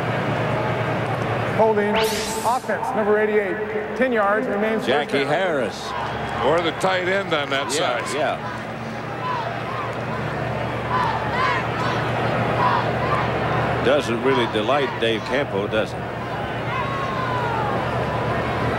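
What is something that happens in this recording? A crowd murmurs and roars in a large open stadium.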